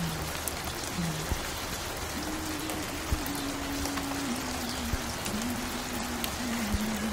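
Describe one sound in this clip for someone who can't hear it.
A record plays a slow, simple melody with soft crackle and hiss.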